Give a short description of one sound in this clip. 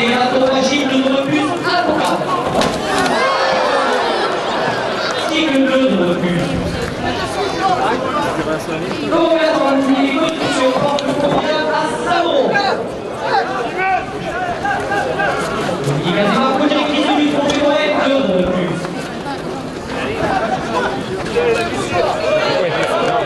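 A large crowd cheers and shouts in an open arena.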